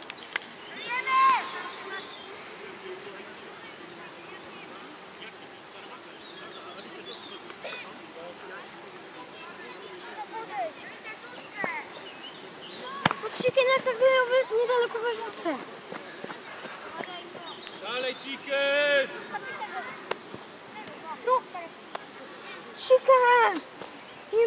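Children shout and call out loudly across an open field.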